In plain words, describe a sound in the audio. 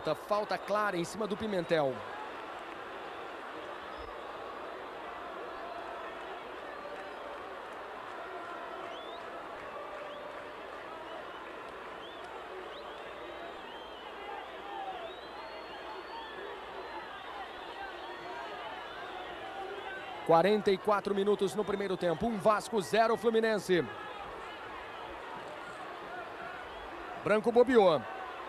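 A large crowd murmurs and roars in an open stadium.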